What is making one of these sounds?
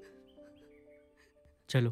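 A young woman sobs softly close by.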